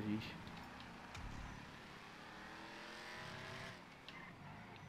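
A car engine revs and hums while driving.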